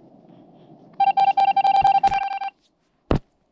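Rapid electronic beeps sound as text types out.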